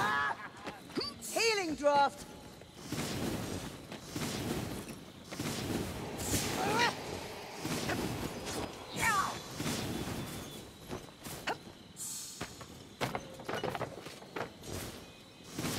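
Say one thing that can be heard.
A sword whooshes through the air in quick swings.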